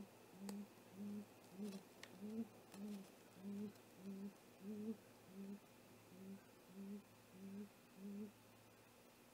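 An owl gives a rapid series of low, short hoots close by.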